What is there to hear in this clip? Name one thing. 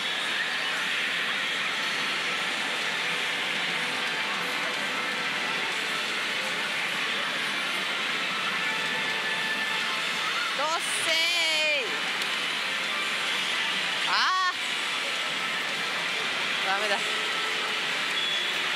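A pachinko machine plays loud, busy music and electronic effects.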